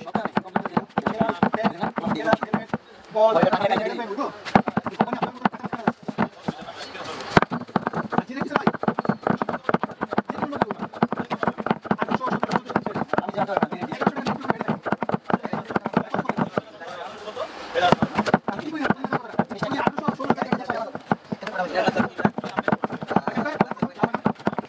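A blade scrapes rapidly along a wooden handle.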